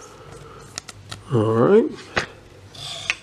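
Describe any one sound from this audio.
A trading card clicks and rustles between fingers.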